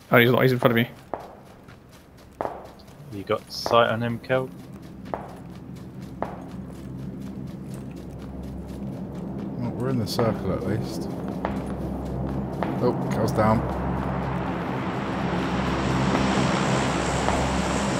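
Footsteps run quickly through tall grass.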